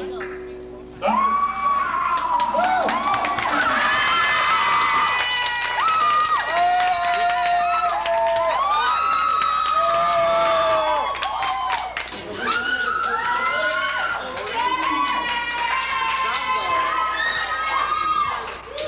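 Electronic instruments play loud, sliding and wavering tones.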